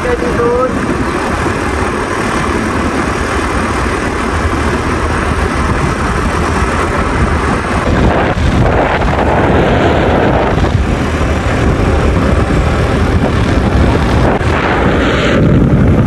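Wind rushes loudly past on a fast motorbike ride outdoors.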